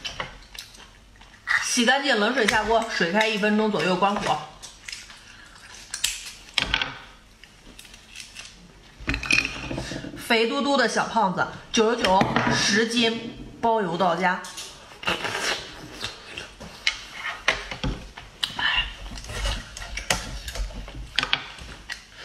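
A knife scrapes against an oyster shell.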